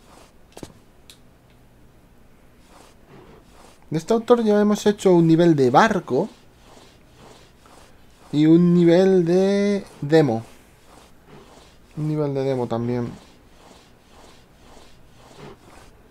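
A character crawls with soft scuffs on a hard floor.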